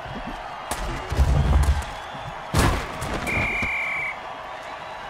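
Heavy bodies collide with loud thuds.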